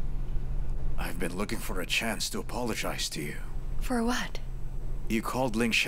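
A middle-aged man speaks calmly and apologetically, close by.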